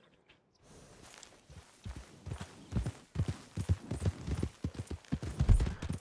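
Horse hooves thud steadily on soft ground.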